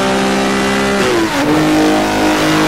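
A racing car engine drops in pitch briefly as a gear shifts up.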